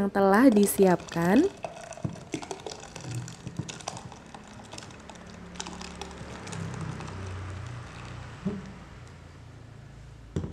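Thick liquid pours and glugs into a plastic container.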